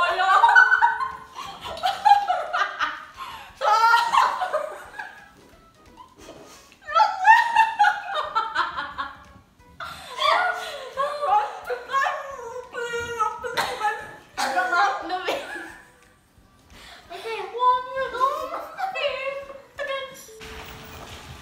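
A young woman talks and sings with animation close by.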